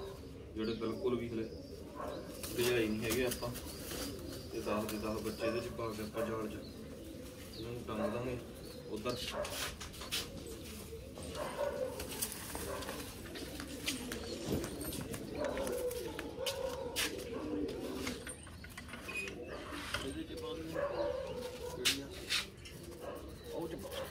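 A wire cage rattles and clinks.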